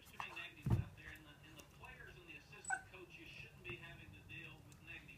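A dog whines softly and repeatedly close by.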